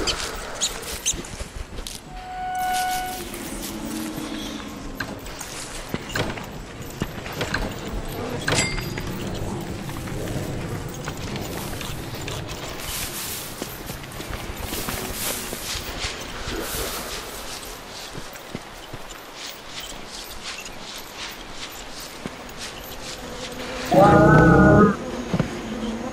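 A large beast's hooves thud along the ground at a steady pace.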